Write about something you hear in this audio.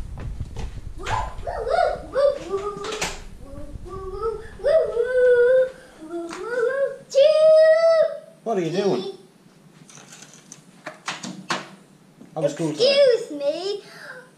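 A young boy talks excitedly close by.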